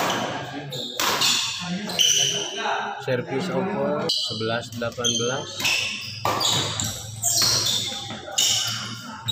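Rackets strike a shuttlecock back and forth in an echoing hall.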